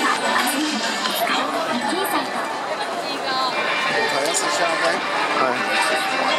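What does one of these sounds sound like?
A large crowd of men and women chatter all around, close by.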